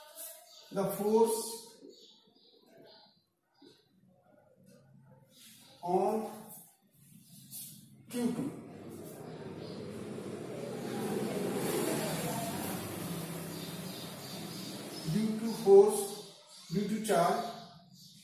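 An elderly man speaks calmly, close by.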